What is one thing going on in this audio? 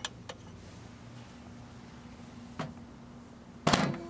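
A microwave door shuts with a thud.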